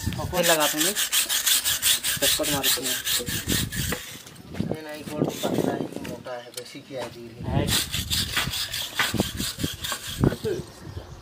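A metal blade scrapes rapidly against stone.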